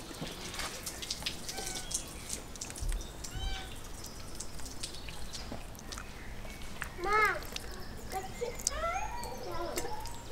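Water splashes as it is poured onto a fish.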